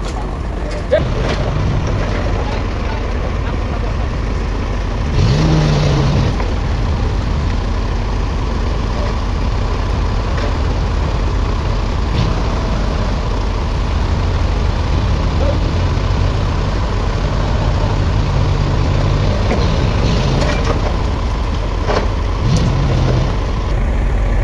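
A forklift engine rumbles steadily close by.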